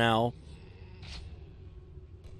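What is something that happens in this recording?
A short pickup chime sounds in a game.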